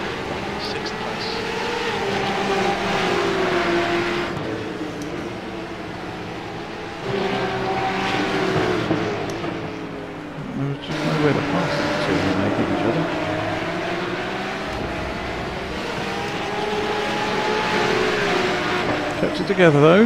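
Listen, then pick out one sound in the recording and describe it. Racing car engines roar and rev, rising and falling in pitch as cars pass.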